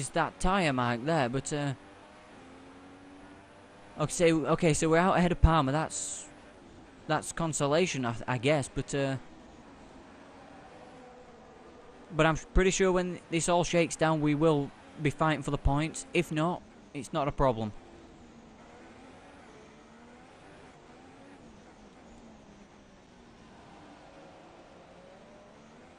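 A racing car engine roars at high revs, rising and falling with gear changes.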